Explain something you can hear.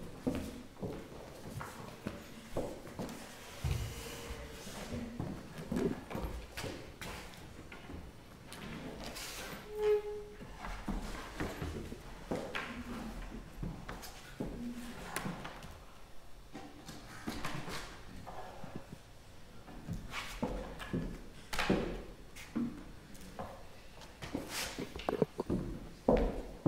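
A young woman speaks calmly through a microphone in a large hall.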